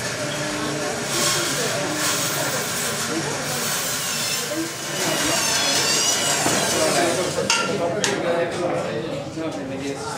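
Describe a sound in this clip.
Women chatter in a busy crowd nearby.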